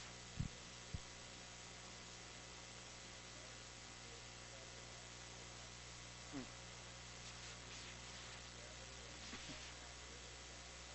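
A projector fan hums steadily.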